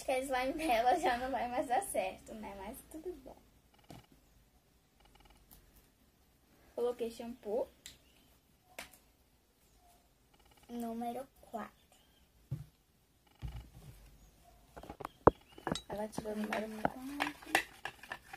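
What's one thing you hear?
A young girl talks with animation close by.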